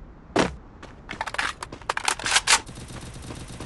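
A game character's footsteps run on pavement.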